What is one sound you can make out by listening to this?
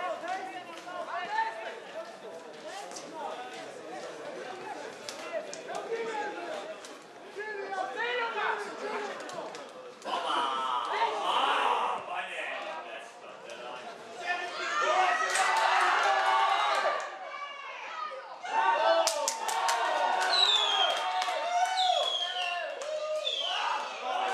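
Men and women in a small crowd shout and cheer outdoors.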